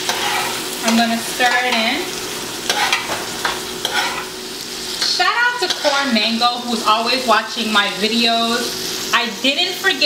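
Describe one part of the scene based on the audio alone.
A spoon scrapes and stirs food in a metal pot.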